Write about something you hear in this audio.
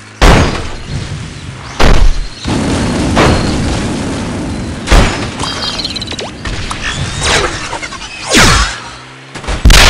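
Game sound effects whoosh and burst as a character spins and strikes.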